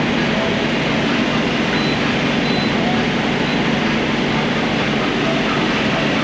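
A fuel pump hums.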